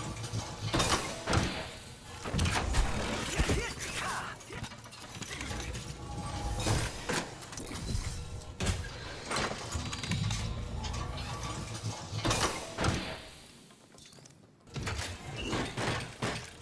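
Short electronic clicks and beeps sound as menu items are chosen.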